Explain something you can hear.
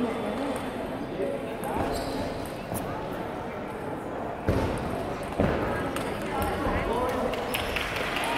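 A table tennis ball clicks back and forth between paddles and table in a large echoing hall.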